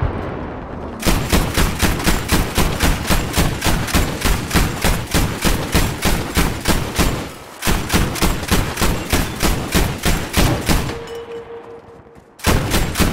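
A heavy anti-aircraft gun fires rapid, thumping bursts.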